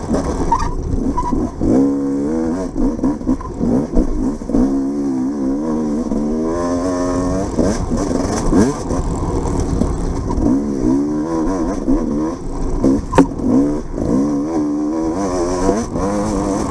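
A motorbike engine revs up and down as it rides along.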